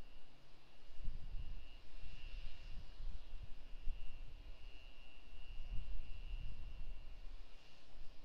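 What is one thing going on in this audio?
A rocket engine rumbles faintly far off.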